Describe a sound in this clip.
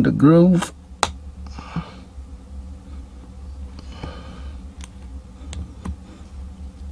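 Metal pliers click and scrape against a small bolt.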